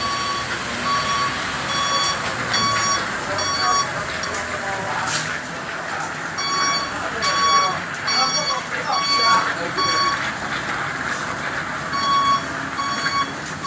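Truck tyres hiss on a wet road.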